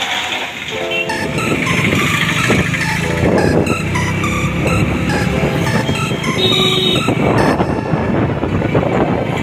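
A scooter engine hums while riding.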